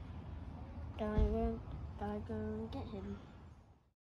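A young boy talks nearby with animation.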